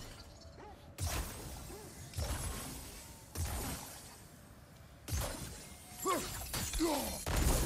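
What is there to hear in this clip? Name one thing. A burst of magical energy whooshes and crackles several times.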